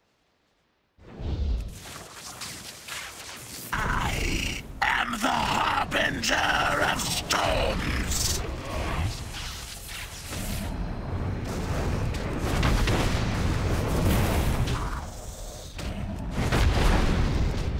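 Fiery magic blasts roar and explode again and again.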